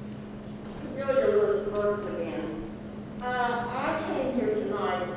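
A woman speaks calmly into a microphone, heard over loudspeakers in a large room.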